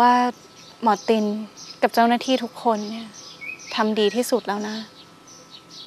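A young woman speaks calmly and quietly nearby.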